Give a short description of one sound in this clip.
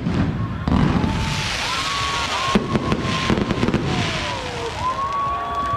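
Crackling fireworks fizz loudly overhead.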